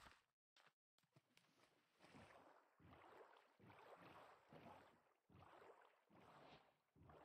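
Water splashes steadily as a boat is rowed along.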